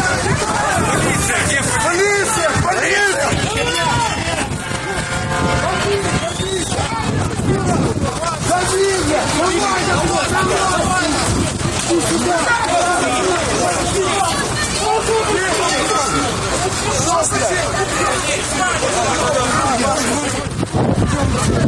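A crowd of men shout and yell.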